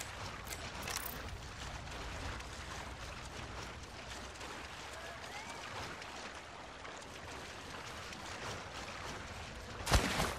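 Water splashes with each step as someone wades through shallow surf.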